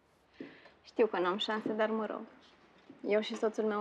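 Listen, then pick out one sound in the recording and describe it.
A woman speaks playfully into a microphone.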